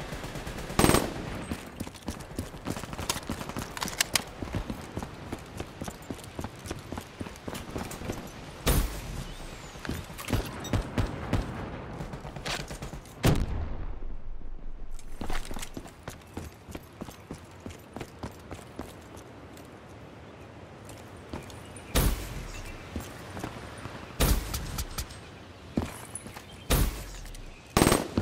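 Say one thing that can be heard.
Footsteps thud quickly while running.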